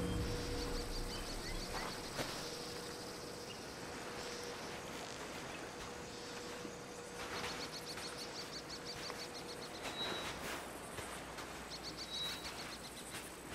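Waves wash gently onto a shore.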